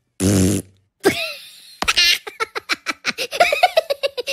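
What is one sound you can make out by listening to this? A cartoon character laughs in a high, squeaky voice.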